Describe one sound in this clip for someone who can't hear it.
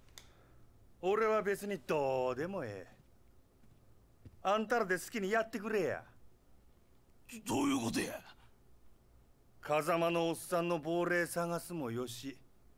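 A man speaks calmly in a low, drawling voice.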